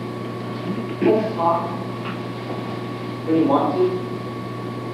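A young man speaks loudly in a large echoing hall, heard from a distance.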